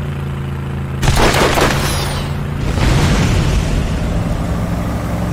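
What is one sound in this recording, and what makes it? Exhaust flames roar from a vehicle's boosters in short bursts.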